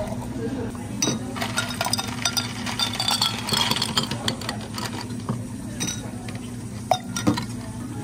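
Ice cubes clatter and clink into a glass jar.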